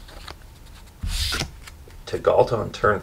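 Playing cards slide and rustle against each other as they are shuffled.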